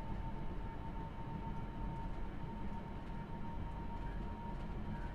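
Train wheels clatter along the rails.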